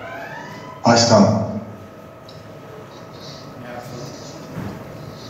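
A man speaks over an online call through a loudspeaker.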